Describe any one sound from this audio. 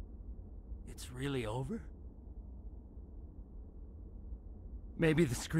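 A man speaks shakily and quietly.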